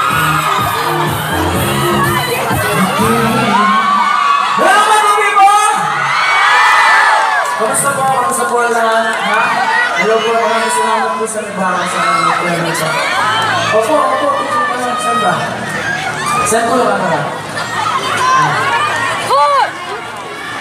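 A young man sings into a microphone over loudspeakers, outdoors.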